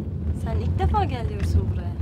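Another young woman speaks calmly close by.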